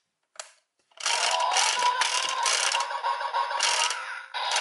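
A toy plays loud electronic sound effects and music through a small speaker.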